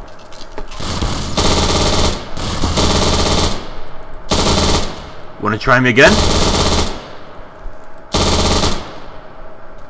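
An automatic gun fires in loud, long bursts.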